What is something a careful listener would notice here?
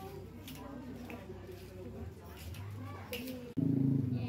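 Footsteps in sandals tap on a paved floor.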